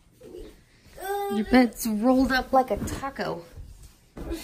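A young child talks excitedly close by.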